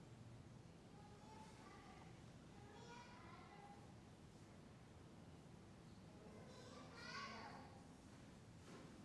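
A man speaks quietly in the distance.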